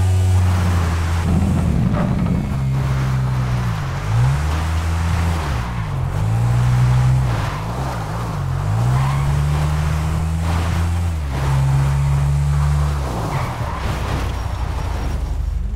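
Tyres crunch on a dirt track.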